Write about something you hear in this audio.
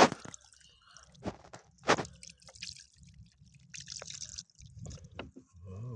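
Water trickles and splashes over stones.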